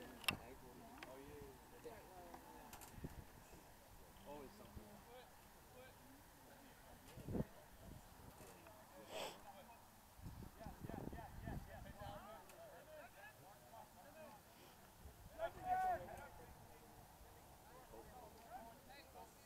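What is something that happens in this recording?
Young women shout and call out across an open field in the distance.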